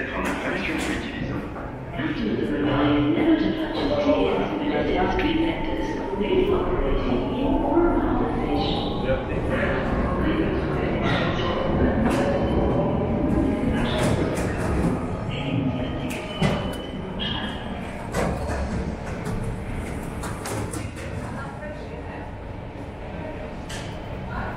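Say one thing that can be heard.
Footsteps tap on a hard floor in an echoing passage.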